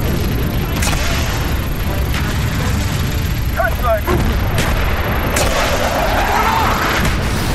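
Explosions boom and rumble heavily.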